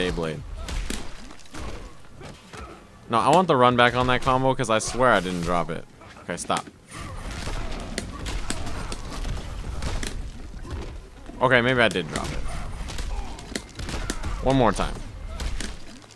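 Punches and kicks land with heavy thuds.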